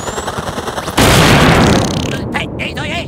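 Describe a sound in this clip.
An object bursts apart with a loud crash.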